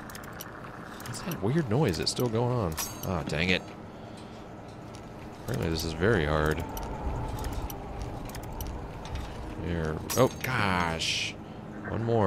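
A thin metal lock pick snaps.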